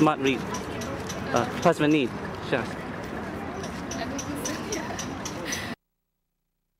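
A young woman speaks close by, calmly.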